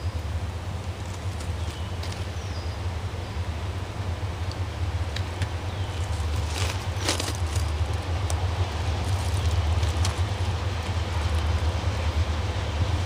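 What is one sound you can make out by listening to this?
A distant train rumbles as it approaches, slowly growing louder.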